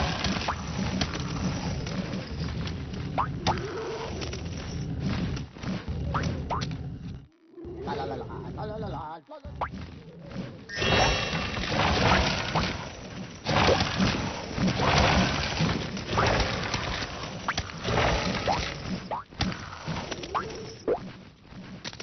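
Short game sound effects chime and pop now and then.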